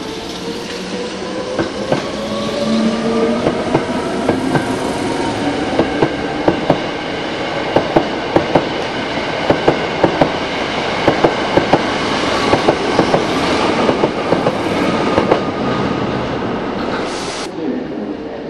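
An electric train passes close by.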